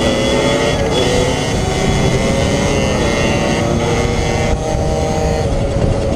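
A dirt bike engine drones as the bike rides along at speed.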